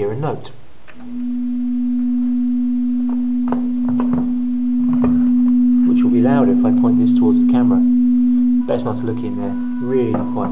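An electrical device gives off a steady low hum.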